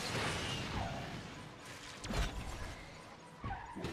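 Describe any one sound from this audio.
Cars crash and scrape against each other.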